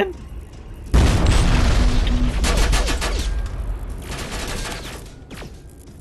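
An explosion booms and roars loudly.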